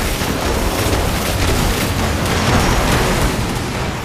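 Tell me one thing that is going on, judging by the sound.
A loud blast booms and roars.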